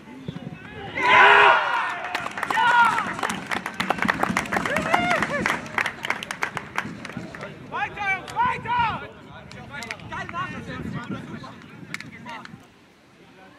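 Young men cheer and shout loudly.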